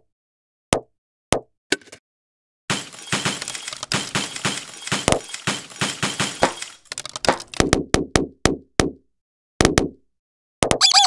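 Objects crunch and shatter in quick bursts.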